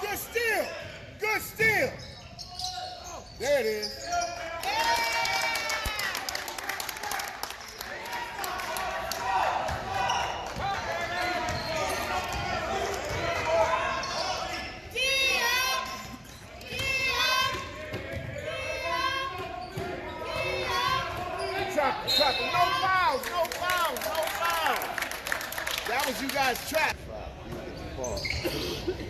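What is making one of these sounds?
Spectators murmur and call out in an echoing gym.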